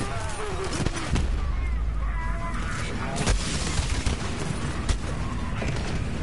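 Explosions from a video game boom.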